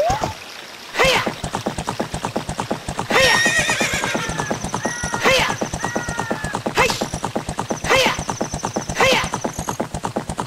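A horse whinnies sharply again and again.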